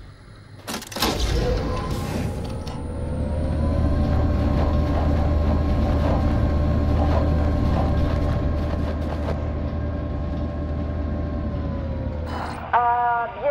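A lift platform hums and whirs steadily as it rises.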